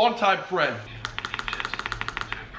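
Keys click rapidly on a laptop keyboard.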